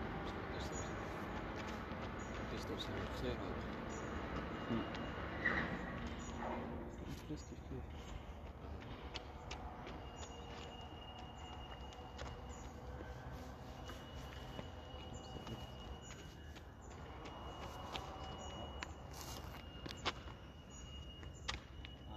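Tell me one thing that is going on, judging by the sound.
Footsteps patter on hard ground as a man sprints back and forth.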